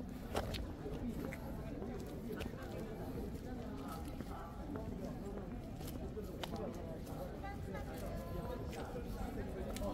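Voices of a crowd murmur in the distance outdoors.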